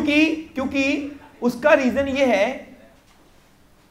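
A young man speaks with animation into a nearby microphone.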